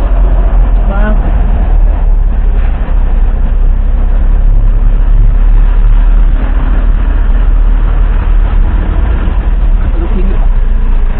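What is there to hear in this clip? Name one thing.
Wind rumbles and buffets loudly against a moving vehicle.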